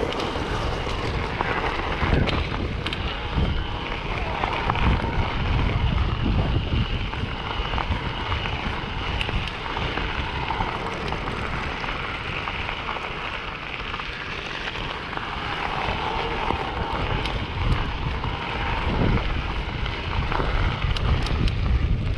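Wind buffets past close by.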